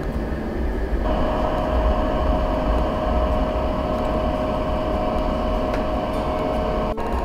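A food dehydrator's fan hums steadily.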